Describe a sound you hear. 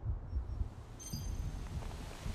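A short electronic interface chime sounds.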